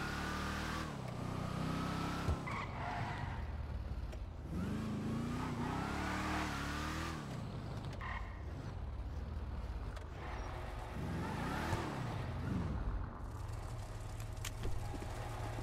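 A car engine revs and rumbles as a car drives and turns.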